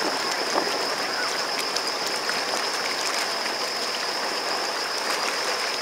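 Water churns and splashes close by as a boat moves along.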